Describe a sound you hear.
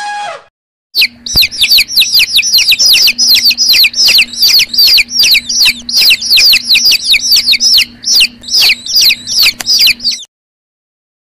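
Many chicks cheep shrilly and constantly.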